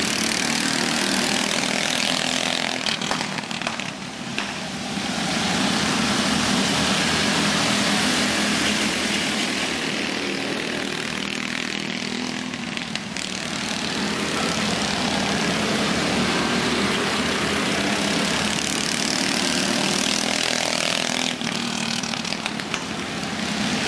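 Go-kart engines drone and whine loudly nearby.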